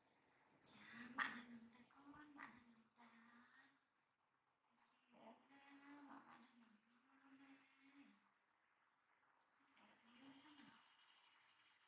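A woman speaks softly and tenderly up close.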